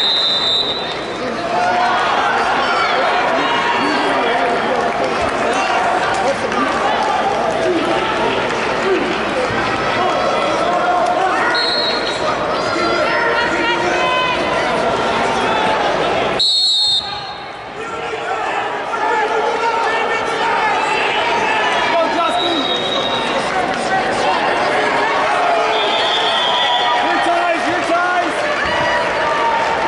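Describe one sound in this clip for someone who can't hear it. A crowd chatters and shouts in a large echoing arena.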